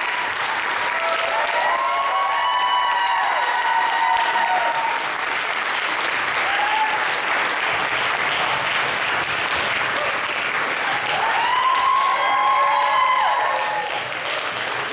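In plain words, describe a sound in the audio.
Young women in the audience cheer and whoop loudly.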